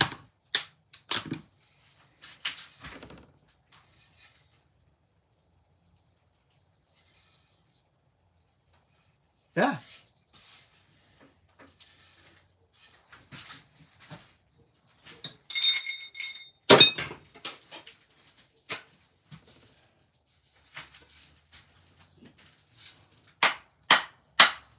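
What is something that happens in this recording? Wooden sticks strike metal scrap with sharp clangs and clatters.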